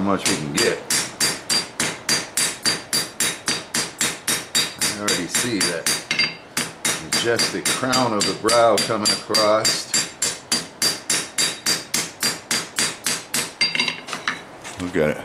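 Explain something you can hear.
A hammer strikes hot metal on an anvil in a fast, steady rhythm, each blow ringing sharply.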